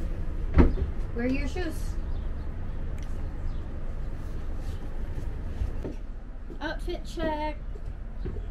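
A young girl speaks briefly close by.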